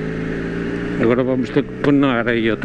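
A motorcycle engine revs up sharply.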